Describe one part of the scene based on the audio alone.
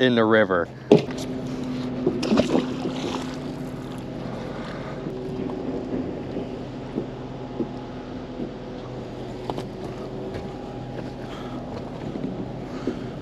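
An electric boat motor hums steadily.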